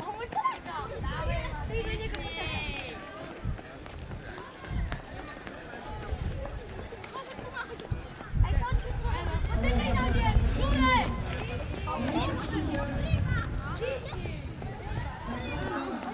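Boys chatter and call out outdoors.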